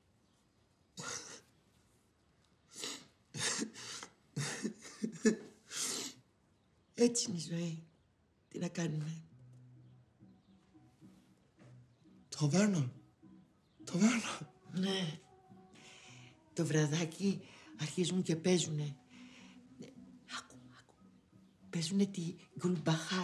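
A young man speaks softly and chuckles nearby.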